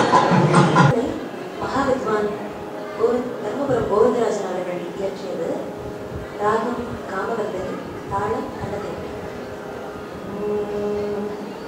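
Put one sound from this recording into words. A young woman sings through a microphone in a melodic, wavering voice.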